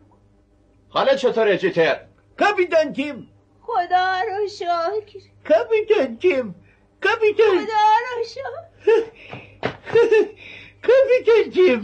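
An elderly man calls out cheerfully nearby.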